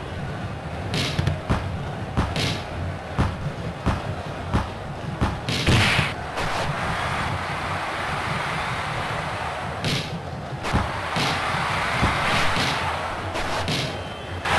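A football is kicked with short, sharp thuds.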